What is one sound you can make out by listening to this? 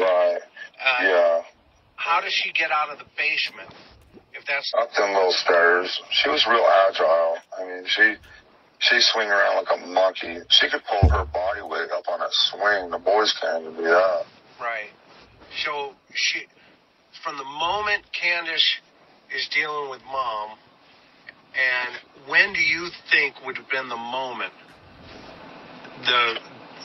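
An older man speaks over an online call.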